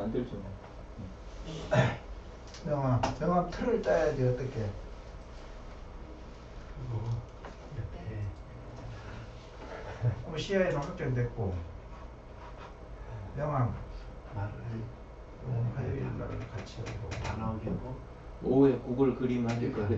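A man talks calmly, pausing now and then.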